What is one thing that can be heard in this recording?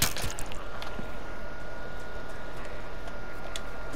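Footsteps crunch quickly over grass and gravel.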